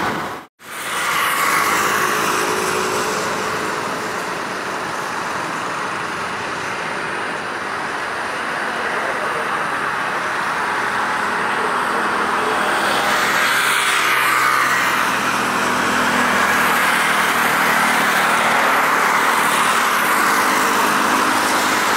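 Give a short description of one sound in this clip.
A jet airliner's engines roar steadily as it approaches, growing louder.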